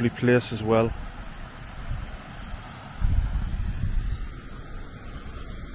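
A shallow river trickles gently over rocks.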